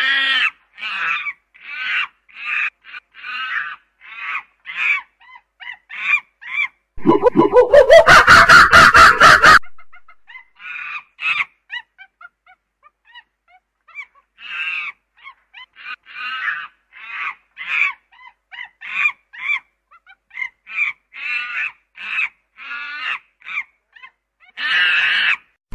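A chimpanzee hoots and screams loudly, in rising bursts.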